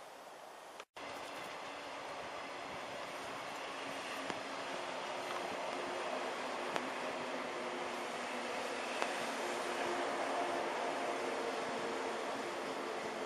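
An electric train rolls past with a steady rumble and whine that slowly grows louder.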